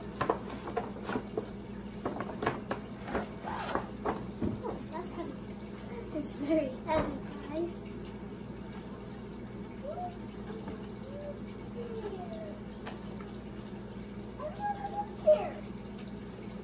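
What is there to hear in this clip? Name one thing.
A young girl talks with animation, close by.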